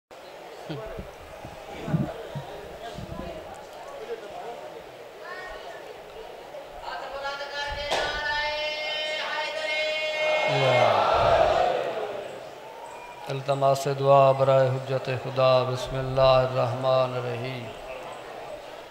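A man chants and recites loudly into a microphone, heard through a loudspeaker.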